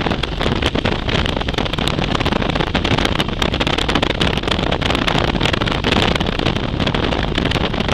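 Wind roars loudly past a motorcycle rider at speed.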